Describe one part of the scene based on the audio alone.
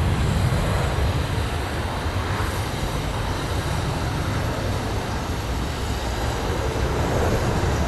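A Boeing 737 jet airliner climbs away, its engine roar fading into the distance.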